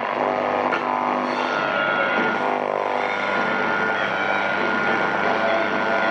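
Music plays from a small radio loudspeaker.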